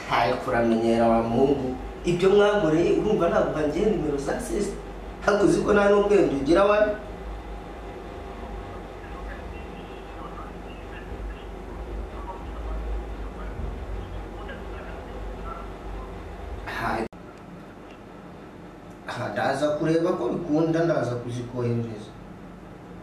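A young man talks into a phone nearby.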